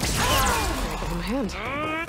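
Electricity crackles and zaps.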